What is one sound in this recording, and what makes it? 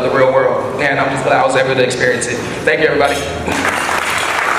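A young man speaks loudly through a microphone in an echoing hall.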